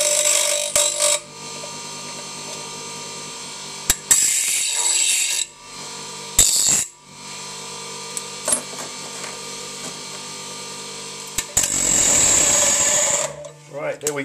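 Metal grinds loudly against a spinning grinding wheel.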